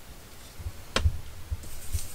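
A plastic stencil clacks down onto a tabletop.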